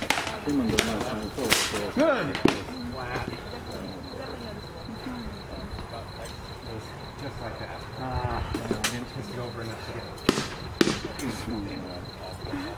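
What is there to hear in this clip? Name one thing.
Armour rattles and clanks as men grapple on the ground.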